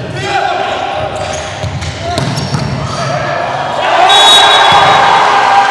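A volleyball smacks off a player's hands.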